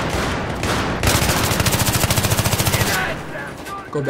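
An assault rifle fires a rapid burst of shots.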